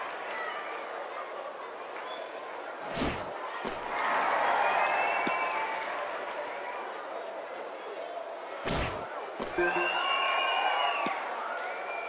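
A stadium crowd murmurs and cheers throughout.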